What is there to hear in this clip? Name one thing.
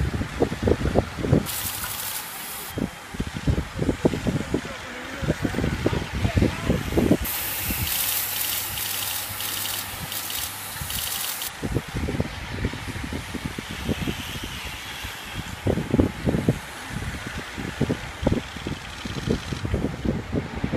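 Bicycles whir past one after another on a road.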